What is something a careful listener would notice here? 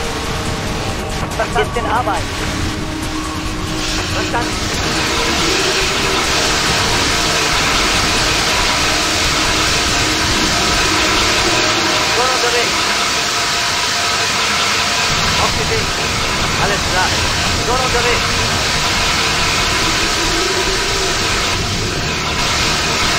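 Water hoses spray in a steady hiss.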